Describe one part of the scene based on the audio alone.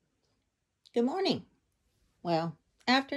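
A dog lets out short, high, bending whines close by.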